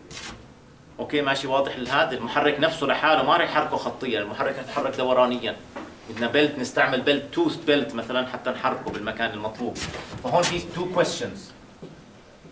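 A middle-aged man speaks calmly and clearly, lecturing.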